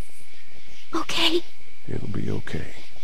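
A young girl speaks softly.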